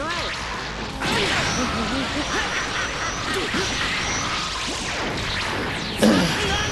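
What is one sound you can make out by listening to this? An energy beam roars and crackles.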